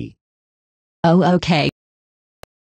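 A young girl speaks briefly.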